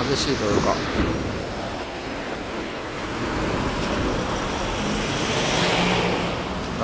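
Traffic noise hums steadily outdoors.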